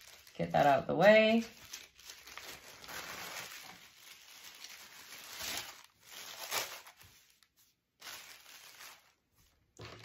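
Fabric rustles as it is folded and moved.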